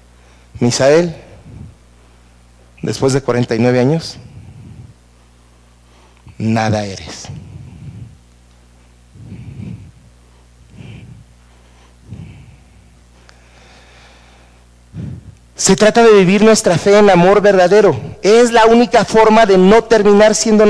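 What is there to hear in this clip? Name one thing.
A middle-aged man speaks with animation through a headset microphone, in a room with some echo, pausing between phrases.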